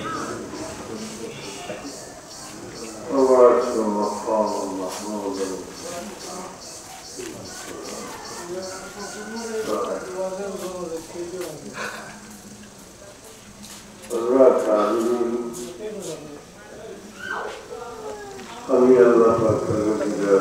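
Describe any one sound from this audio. An elderly man speaks slowly and calmly into a microphone, heard over a loudspeaker.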